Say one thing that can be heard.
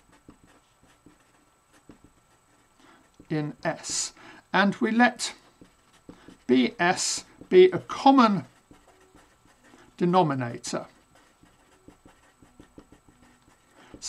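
A marker squeaks on paper as it writes.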